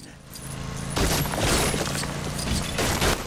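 A car's tyres skid and scrape over debris.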